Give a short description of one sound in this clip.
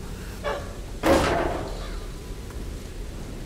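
A wooden chest lid creaks open.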